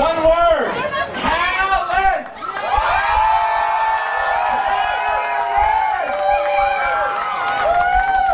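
A performer sings loudly through a microphone over outdoor loudspeakers.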